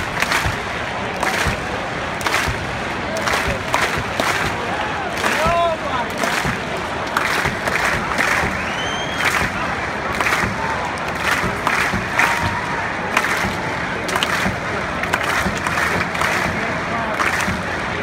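A marching band plays loudly across a large open stadium.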